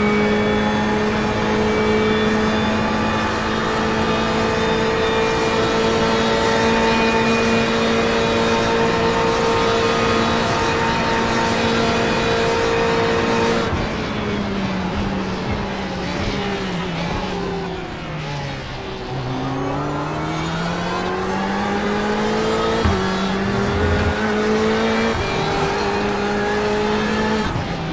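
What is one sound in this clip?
A race car engine roars loudly at high speed, its pitch falling as it slows for a corner and rising again as it speeds up.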